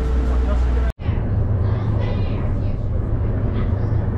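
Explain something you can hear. A ferry engine hums steadily.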